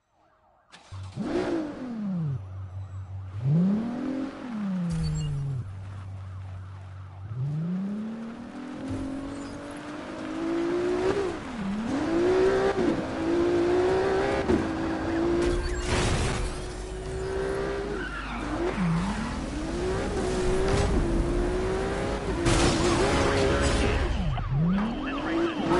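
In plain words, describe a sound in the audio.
A sports car engine revs hard, climbing in pitch and dropping again with each gear change.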